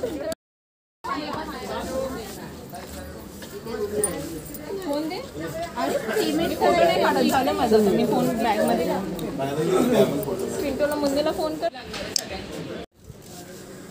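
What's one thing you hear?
A woman talks calmly close to the microphone.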